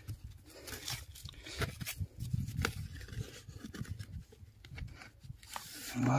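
A hand scrapes and pats loose soil.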